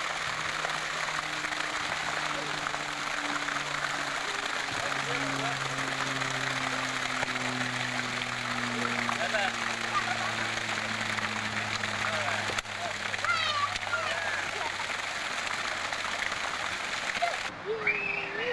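A fountain splashes steadily nearby.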